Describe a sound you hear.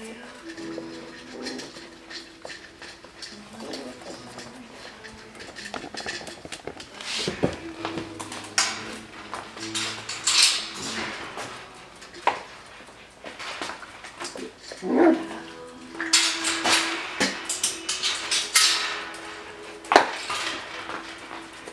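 Puppy paws patter and scrabble on a hard floor.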